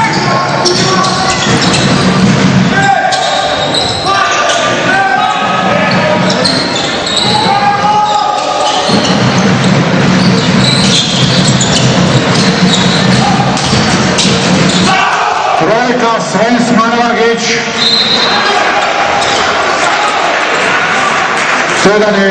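Basketball shoes squeak on a hardwood court in a large echoing hall.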